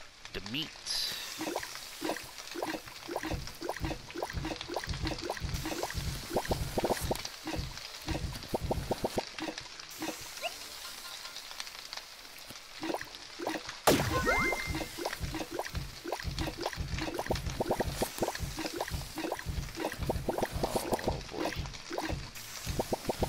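A wooden spatula clatters against a cooking pan in quick strokes.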